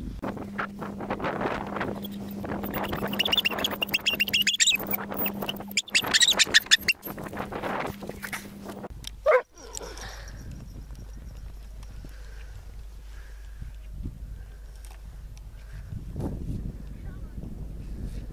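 Wind blows outdoors, rustling against the microphone.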